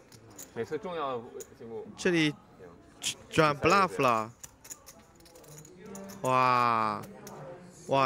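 Poker chips clatter as they are pushed across a table.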